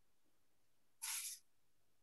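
A page turns with a rustle.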